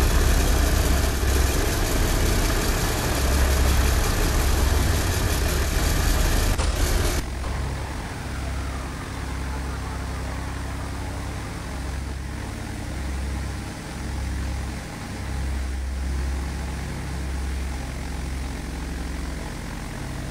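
Aircraft engines drone loudly and steadily.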